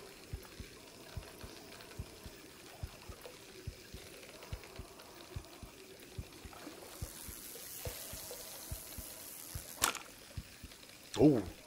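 A fishing reel ticks steadily as line is wound in.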